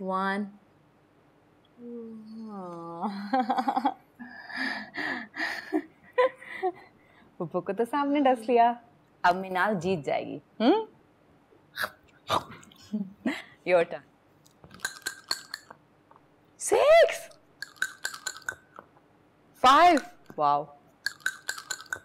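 A young woman talks playfully, close by.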